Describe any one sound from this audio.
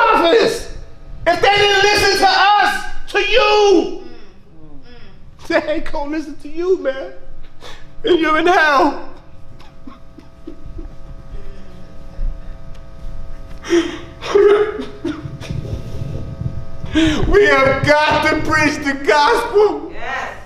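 A middle-aged man speaks with emotion into a microphone, pausing often.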